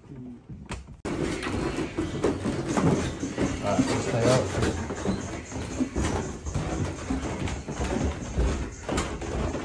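Several people's footsteps thud on stairs.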